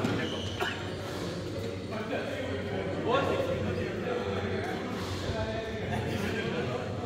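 Shuttlecocks are struck with rackets.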